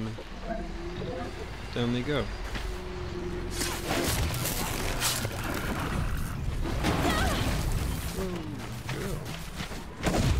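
Metal beasts crash and screech in a fight.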